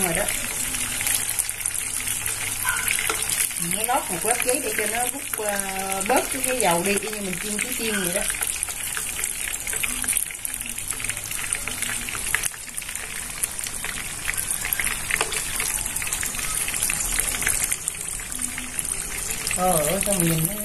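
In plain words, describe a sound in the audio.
Metal tongs clink against the rim of a pan.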